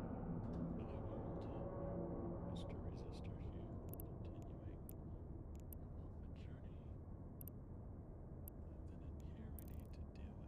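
A deep, steady hum drones on throughout.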